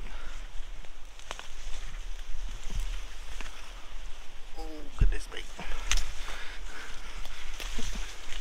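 Leaves and branches rustle and brush against a passing body.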